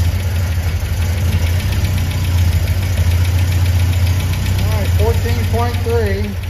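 A car engine idles with a steady low hum and fast ticking.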